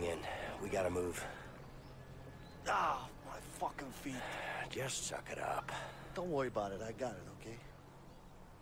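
A young man talks urgently.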